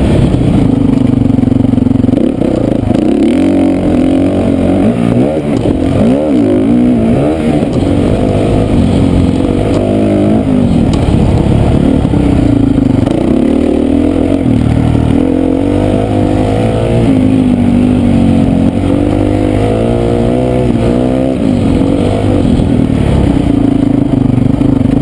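A motocross bike engine revs loudly up close, rising and falling in pitch.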